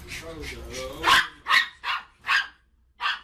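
A dog barks loudly several times.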